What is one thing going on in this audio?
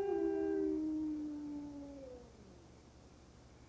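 A wooden flute plays a slow, gliding melody that fades away.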